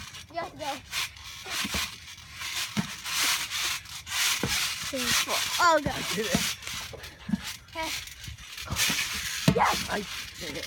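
A trampoline mat thumps and creaks as boys bounce.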